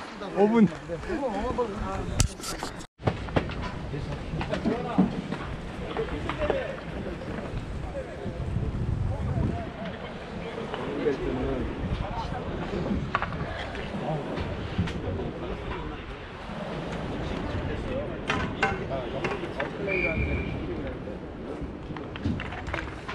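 Skate wheels roll and rumble over rough pavement, close by.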